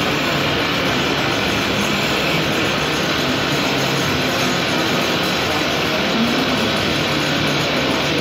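A turning chisel scrapes and cuts into spinning timber.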